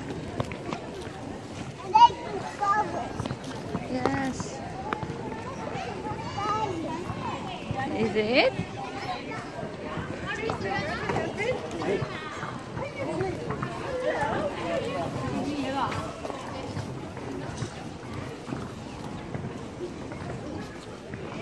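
Men and women talk nearby outdoors in an open square.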